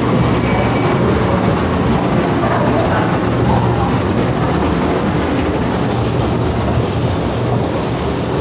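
An escalator hums and rumbles steadily as it rises.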